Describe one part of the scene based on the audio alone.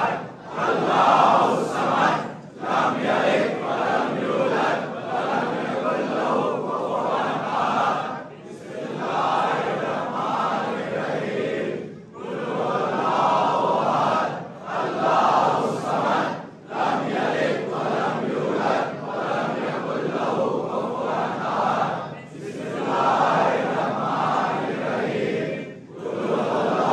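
A large crowd of men chants loudly together in an echoing hall.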